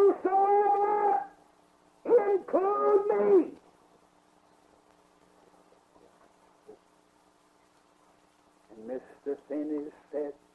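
An elderly man sings slowly in long held notes, heard through an old recording.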